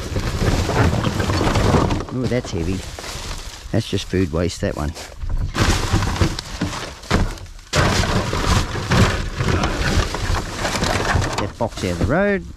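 Plastic bags and wrappers rustle and crinkle as they are handled.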